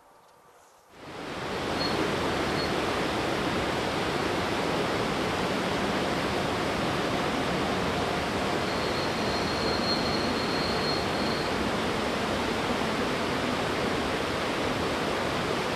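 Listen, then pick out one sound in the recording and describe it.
A river rushes loudly nearby.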